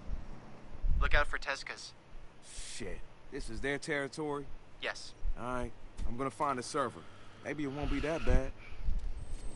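A young man talks calmly.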